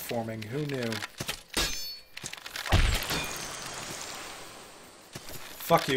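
Swords clash and slash in a game's fight.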